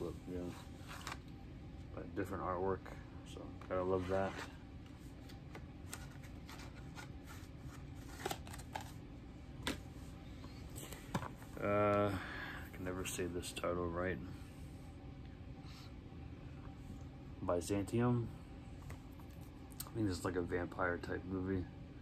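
Plastic disc cases click and rattle in a man's hands.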